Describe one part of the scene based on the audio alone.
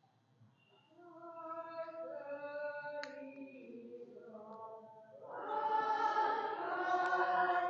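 A man chants slowly into a microphone.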